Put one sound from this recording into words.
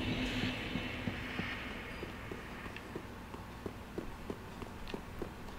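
Armored footsteps clank on a stone floor.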